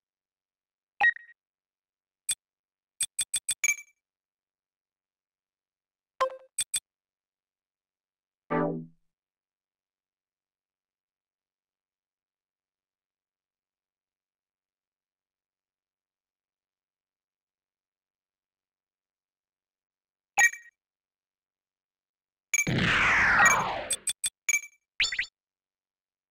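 Game menu sounds blip and click in quick bursts.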